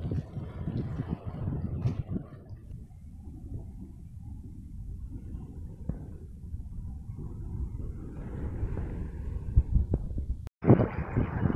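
Waves lap and splash against rocks close by.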